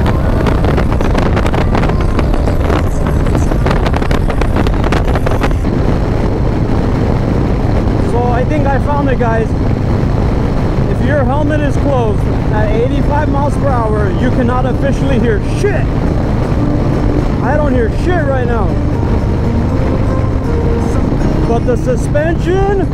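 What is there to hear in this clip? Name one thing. A motorcycle hums steadily.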